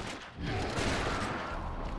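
A magical energy beam fires with a crackling whoosh.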